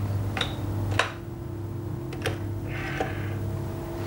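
A telephone receiver clicks and knocks as it is handled.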